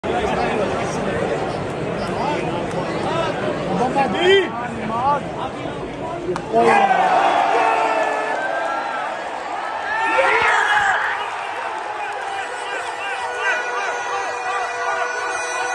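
A large stadium crowd chatters and cheers all around, heard from among the crowd.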